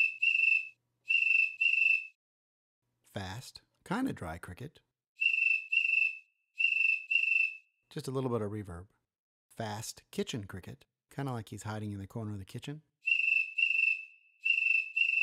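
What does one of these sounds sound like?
A phone app plays high, rapid cricket chirps in short bursts.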